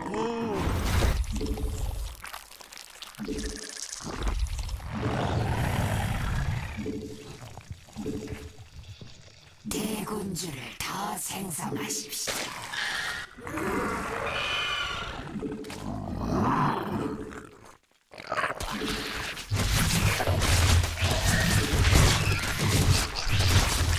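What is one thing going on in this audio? Video game battle effects thud and crackle.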